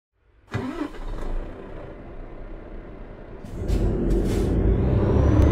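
A truck engine idles with a low rumble that grows louder.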